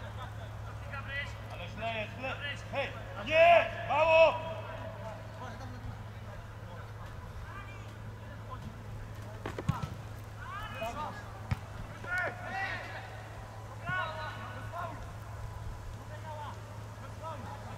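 Men shout to each other across an open field at a distance.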